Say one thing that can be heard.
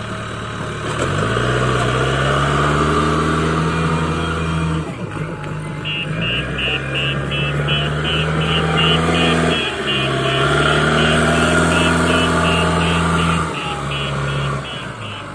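A diesel engine rumbles and revs up and down.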